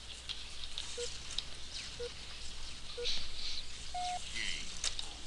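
Short beeps sound at a steady pace, one each second.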